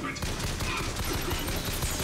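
A pistol fires with loud bangs.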